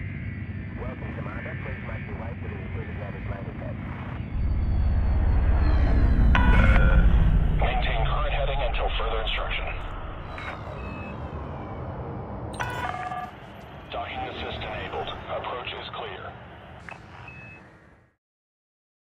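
A spaceship engine hums and roars, swelling to a deep loud rumble and then easing off.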